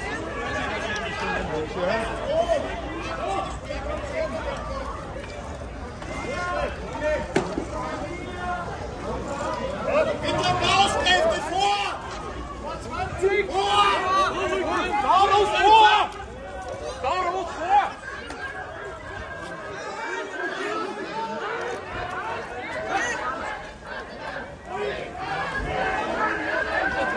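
A crowd of men and women shouts loudly outdoors.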